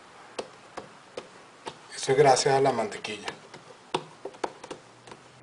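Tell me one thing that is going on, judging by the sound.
Hands slap and press soft dough on a wooden board.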